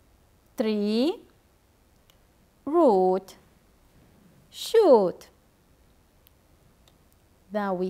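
A young woman speaks slowly and clearly into a microphone, in short phrases with pauses.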